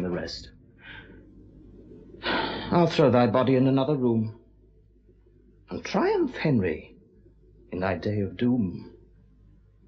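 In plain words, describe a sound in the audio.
A man speaks quietly and slowly in pauses, close by.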